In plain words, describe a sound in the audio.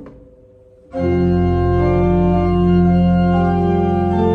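A pipe organ plays loud, full chords that ring out in a large room.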